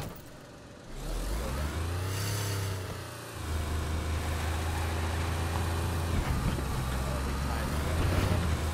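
A car engine revs and hums steadily as the car drives.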